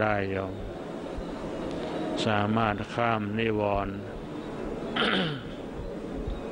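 An elderly man chants slowly and steadily into a microphone.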